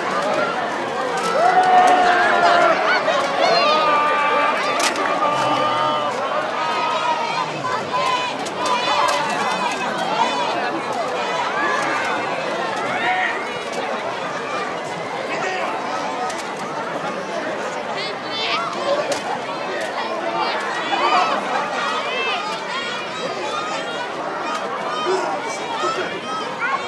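A large crowd of men and women shouts and cheers excitedly close by, outdoors.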